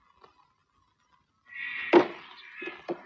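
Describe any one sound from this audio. A car bonnet slams shut.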